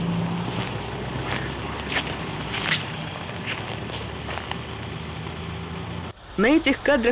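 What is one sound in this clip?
A car engine hums as it passes.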